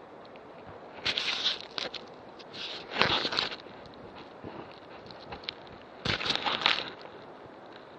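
Leaves and branches rustle as someone pushes through plants.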